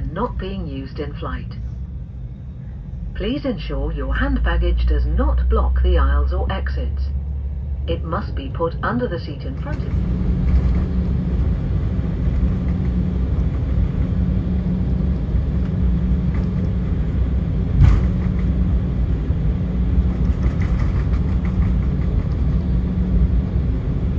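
A jet engine rumbles steadily close by.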